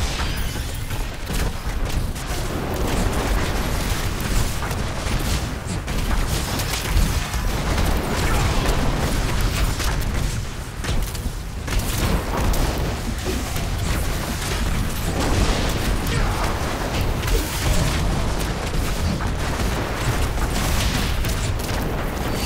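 Electric bolts crackle in a video game battle.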